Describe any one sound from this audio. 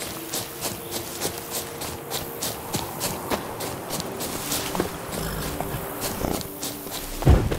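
Horse hooves gallop rhythmically over ground.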